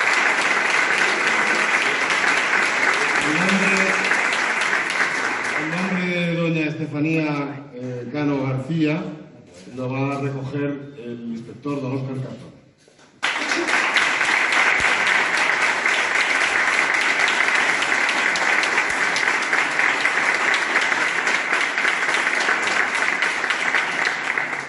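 People clap their hands close by.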